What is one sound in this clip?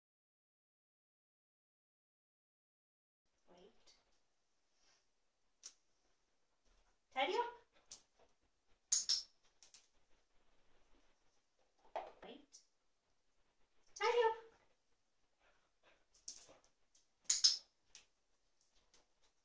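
A toy drops into a wicker basket with a soft thud.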